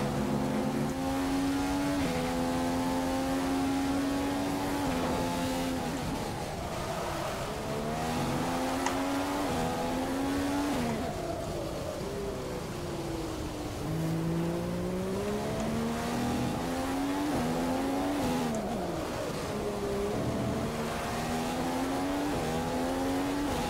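A racing car engine screams, rising and dropping in pitch as it shifts gears.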